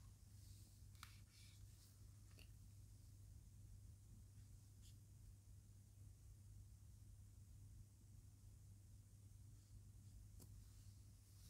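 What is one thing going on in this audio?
A marker squeaks and taps faintly on a whiteboard.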